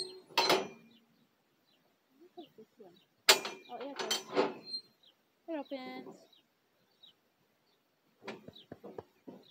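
Metal bars of a livestock chute clank and rattle.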